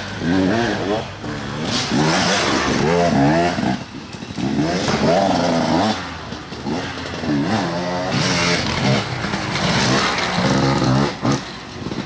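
A dirt bike engine revs up and down, rising and falling repeatedly.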